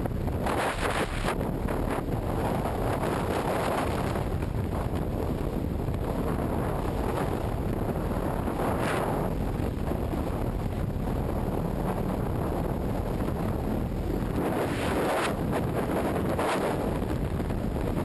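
Strong wind roars loudly past a helmet during freefall.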